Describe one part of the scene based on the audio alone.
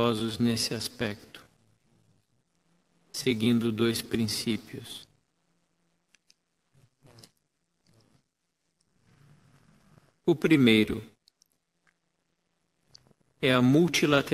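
An older man speaks calmly into a microphone, with pauses between phrases.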